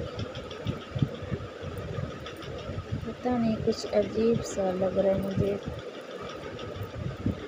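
Metal beads on a necklace clink and rattle softly as it is handled.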